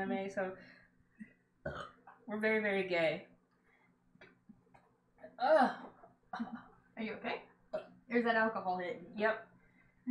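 A second woman talks and laughs, heard through an online call.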